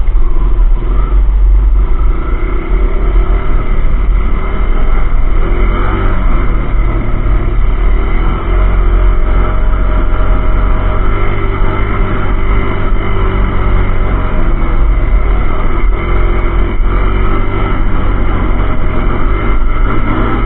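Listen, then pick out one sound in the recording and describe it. A dirt bike engine roars steadily close by, its pitch rising and falling with the throttle.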